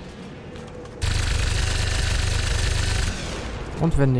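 A heavy gun fires a rapid burst.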